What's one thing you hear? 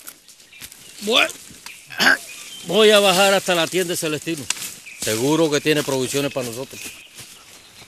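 A middle-aged man speaks forcefully outdoors.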